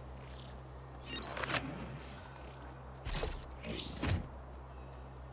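Short electronic whooshes and clicks sound as a menu opens and items are selected.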